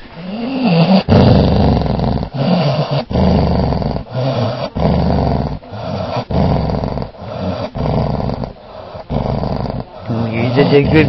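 Fur rustles and scrapes loudly right against the microphone.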